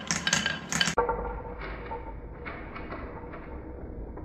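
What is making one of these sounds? Glass marbles roll and click in wooden bowls.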